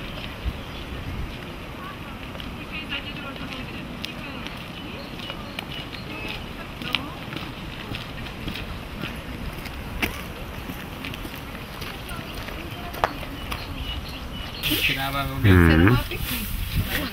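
Men and women chat quietly nearby.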